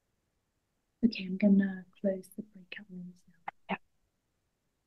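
A young woman speaks briefly through an online call.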